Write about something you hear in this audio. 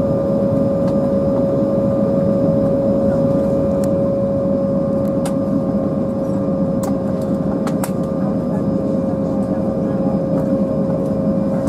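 Jet engines hum and whine steadily from inside an aircraft cabin.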